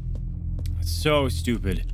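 A young man speaks loudly and with animation into a microphone.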